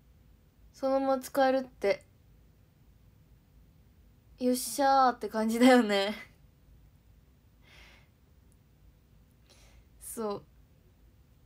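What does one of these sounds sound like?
A young woman speaks brightly and close to a microphone, in short bursts.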